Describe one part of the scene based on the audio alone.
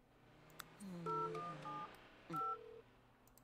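A machine beeps in short electronic tones.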